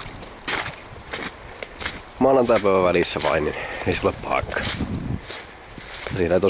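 Footsteps crunch and rustle on a soft forest path.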